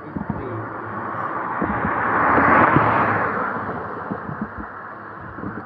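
A car drives past close by on the road.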